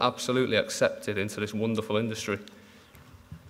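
A young man speaks calmly into a microphone.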